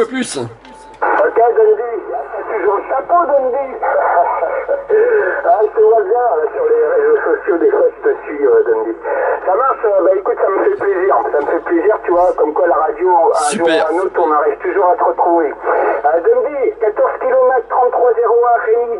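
A man's voice crackles over a radio loudspeaker, thin and narrow.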